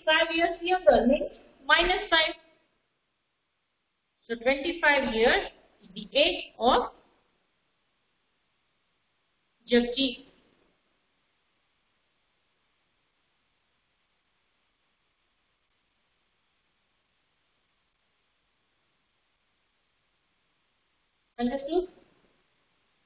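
A woman speaks calmly in short bursts, close by.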